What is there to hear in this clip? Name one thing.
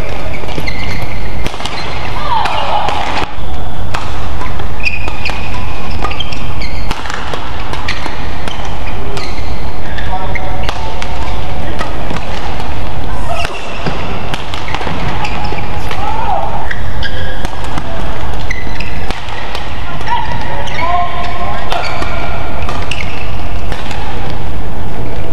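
Rackets sharply strike a shuttlecock back and forth in a quick rally.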